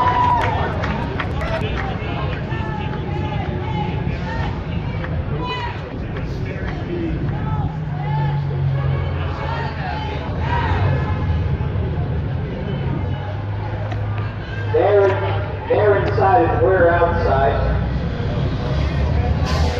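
A man speaks loudly through a megaphone in an echoing hall.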